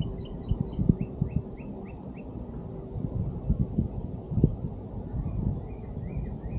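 Water laps gently against a boat's hull.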